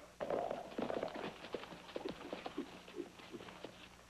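Horses' hooves clatter on the ground.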